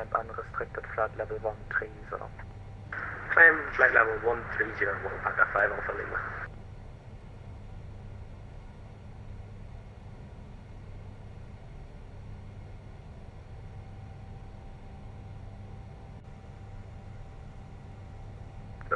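A jet airliner's engines drone steadily.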